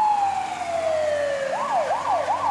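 A fire engine's siren glides slowly down in pitch.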